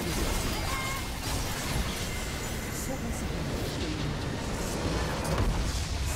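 Game explosions and spell effects crash and boom in a busy battle.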